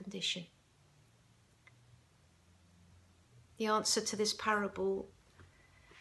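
An older woman speaks calmly and close to a microphone, with pauses.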